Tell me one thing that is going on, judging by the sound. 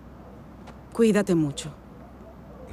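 A woman speaks sharply, close by.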